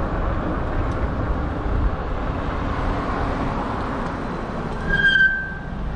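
Cars drive along the road nearby.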